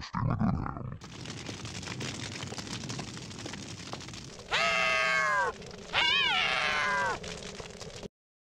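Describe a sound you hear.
A fire crackles and roars steadily.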